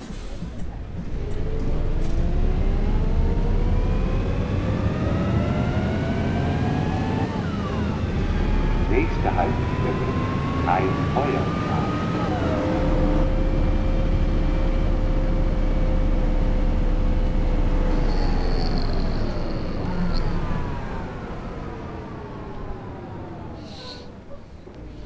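A bus engine drones and rises in pitch as it speeds up through its gears, then winds down as it slows.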